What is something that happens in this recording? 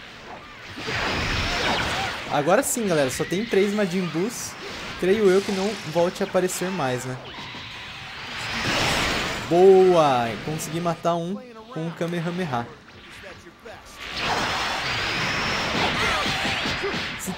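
Energy blasts roar and whoosh in bursts.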